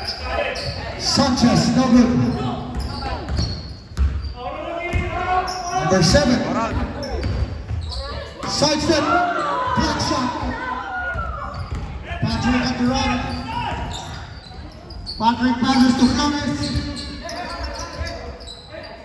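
Spectators shout and cheer in an echoing gym.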